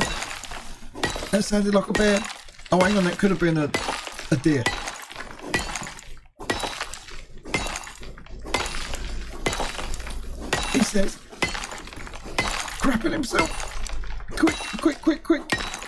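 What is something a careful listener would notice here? Ice crystals crack and shatter with sharp clinks.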